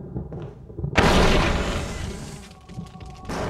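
A handgun fires loudly indoors.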